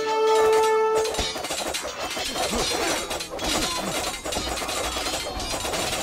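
Swords clash and clang rapidly in a busy battle.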